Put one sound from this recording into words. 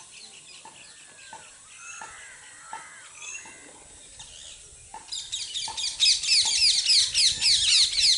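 Birds chirp and twitter rapidly nearby, growing louder and busier.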